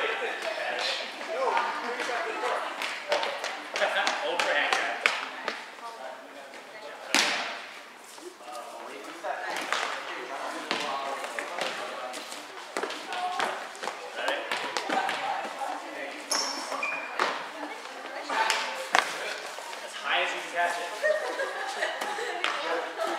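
Young people chatter and call out, echoing in a large hall.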